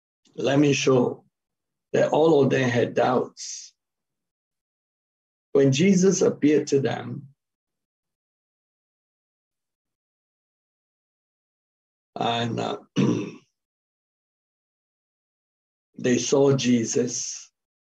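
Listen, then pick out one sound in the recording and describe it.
A middle-aged man speaks calmly in short phrases over an online call.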